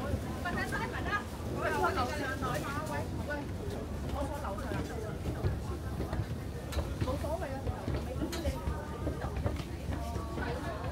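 Men and women chatter nearby in a crowd.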